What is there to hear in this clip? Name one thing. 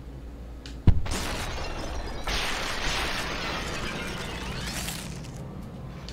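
Glass-like shards shatter and scatter with a crunching rush.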